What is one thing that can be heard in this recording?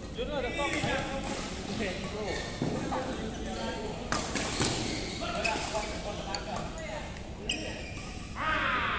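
Men call out to each other in a large echoing hall.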